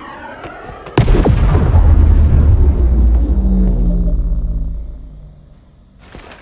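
A loud explosion booms and rumbles slowly away.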